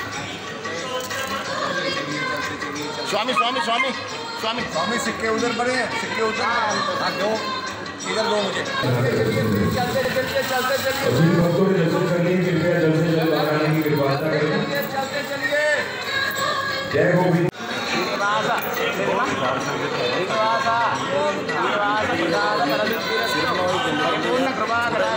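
A crowd of men and women talk nearby.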